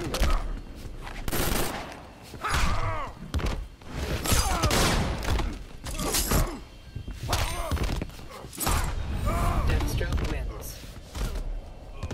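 A fighter grunts and shouts with effort.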